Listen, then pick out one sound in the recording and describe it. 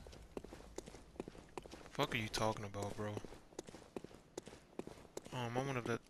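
Quick footsteps run over stone paving.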